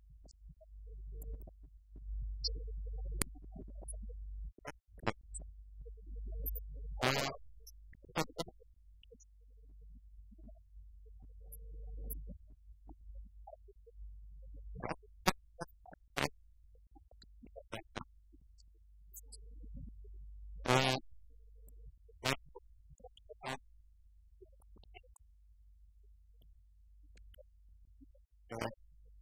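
Laptop keys click and tap in a quiet room.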